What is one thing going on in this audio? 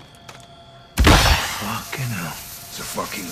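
A loud burst of gunfire erupts.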